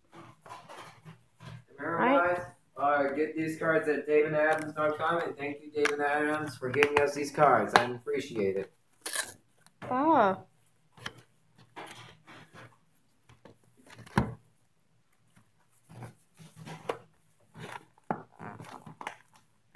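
Cardboard card packs rustle and tap.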